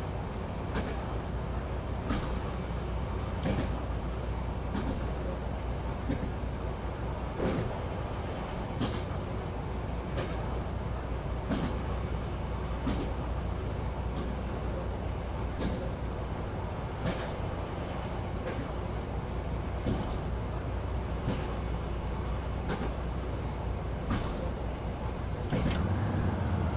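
Train wheels click over rail joints at a steady rhythm.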